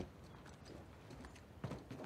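Footsteps thud on a metal roof.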